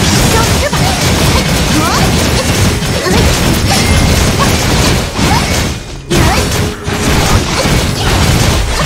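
Game combat effects clash and explode rapidly in dense, loud bursts.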